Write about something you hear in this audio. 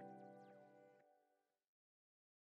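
Soft music plays from a record player and fades out.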